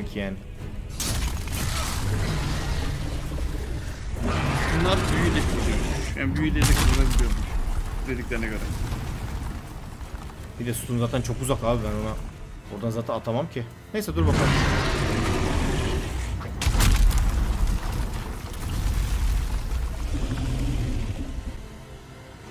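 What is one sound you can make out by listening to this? Heavy impacts and rumbling noise sound from a game.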